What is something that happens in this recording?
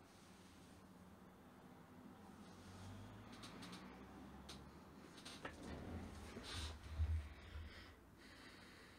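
Clothing rustles close by as a man shifts in his seat.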